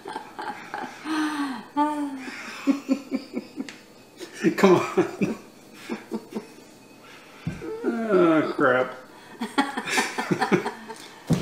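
A woman laughs heartily close by.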